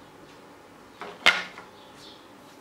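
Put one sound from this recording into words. A plastic tray knocks down onto a surface.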